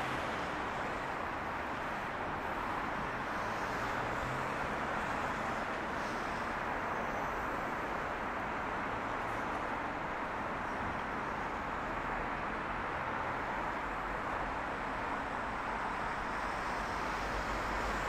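Traffic rumbles past steadily on a nearby road.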